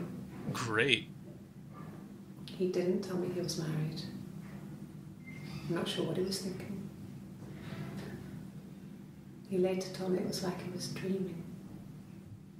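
A young woman speaks calmly and hesitantly, close by.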